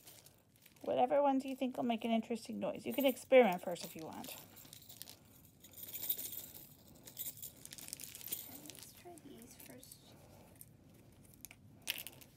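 A plastic bag crinkles and rustles as small items are handled.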